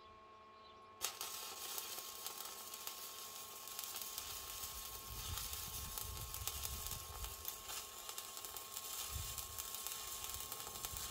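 An arc welder crackles and sizzles steadily.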